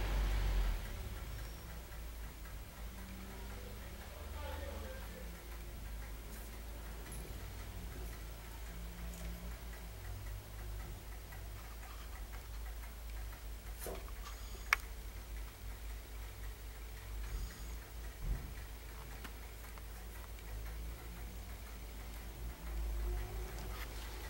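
A ball rolls and bumps softly across a hard floor.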